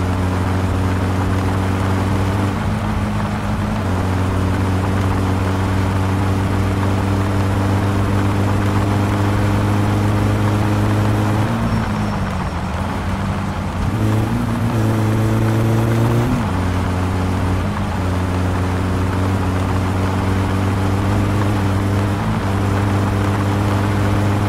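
A car engine drones steadily, its pitch shifting briefly as gears change.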